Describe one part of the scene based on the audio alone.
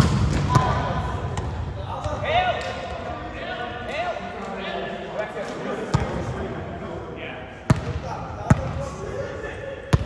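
Young adults call out and chatter around the court.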